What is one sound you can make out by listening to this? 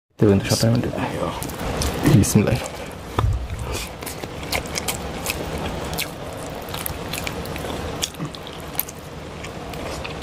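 Fingers squish and mix soft, wet food.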